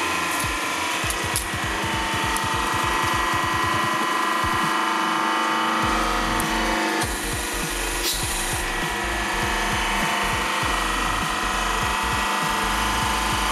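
A hydraulic press hums steadily.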